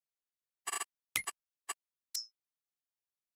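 A few short menu clicks sound.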